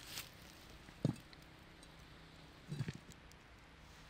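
A metal lid clanks against a pot.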